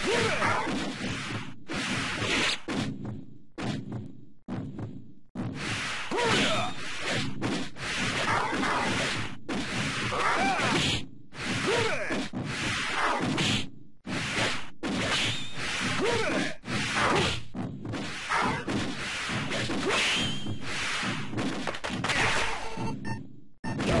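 Fighting game sound effects sound throughout.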